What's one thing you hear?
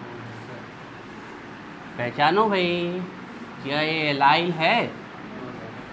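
A board eraser rubs across a board.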